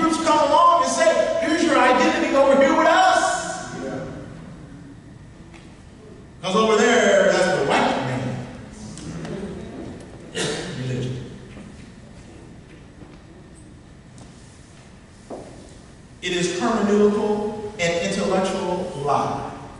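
A man speaks with animation through a microphone in a room with some echo.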